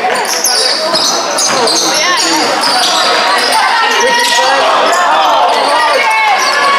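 A crowd of spectators cheers and shouts loudly in an echoing gym.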